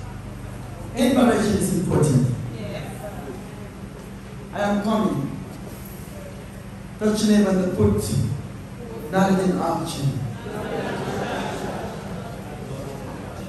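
A woman speaks loudly and with animation through a microphone in an echoing hall.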